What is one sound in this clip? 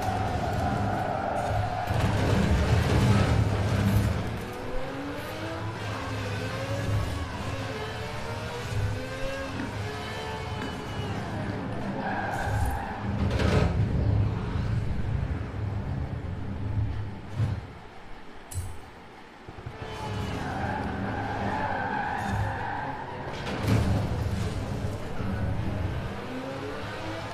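A sports car engine roars and revs up and down at high speed.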